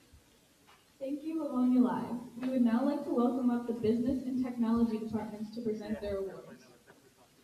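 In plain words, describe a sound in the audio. A young woman speaks into a microphone over a loudspeaker in a large echoing hall.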